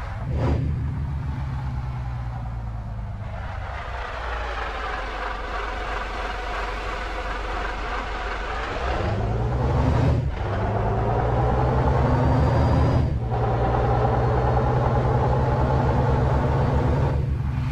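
A bus engine hums and revs up through its gears.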